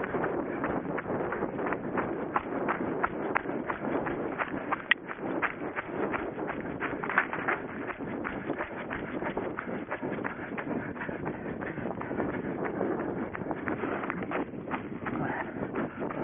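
A runner breathes heavily.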